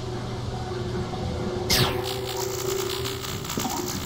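A silenced pistol fires a muffled shot.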